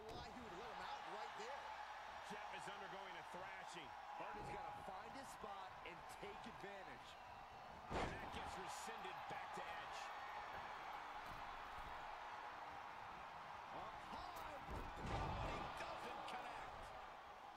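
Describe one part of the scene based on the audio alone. A crowd cheers steadily.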